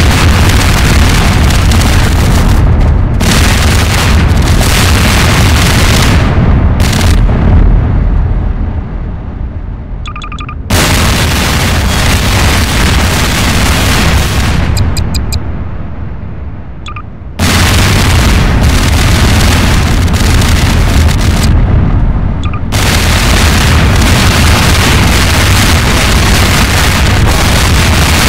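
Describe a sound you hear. Loud explosions boom and rumble one after another.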